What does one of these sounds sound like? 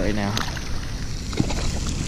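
A fish splashes into water close by.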